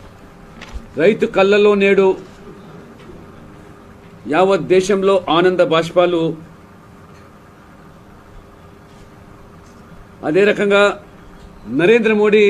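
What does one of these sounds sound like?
An elderly man speaks calmly into microphones, in phrases broken by pauses.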